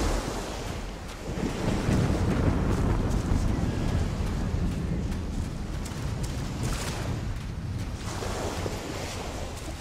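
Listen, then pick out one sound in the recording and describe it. Footsteps crunch quickly on sand.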